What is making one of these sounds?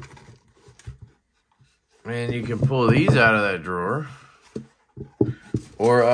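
Light plastic trays knock and clatter as they are lifted out and set down.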